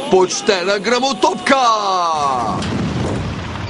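A man shouts in a strained, wavering voice.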